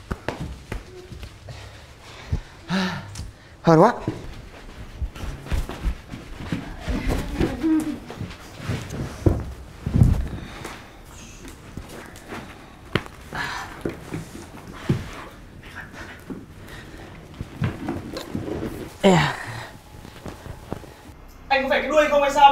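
Young men and women talk and exclaim with animation.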